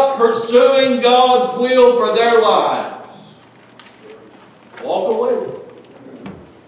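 A middle-aged man preaches forcefully through a microphone in an echoing room.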